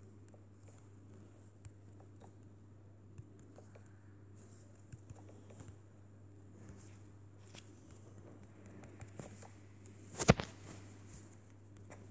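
Wooden blocks are set down with soft, quick knocks.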